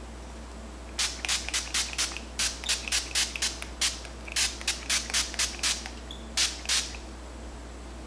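A spray bottle mists onto a wig in quick bursts.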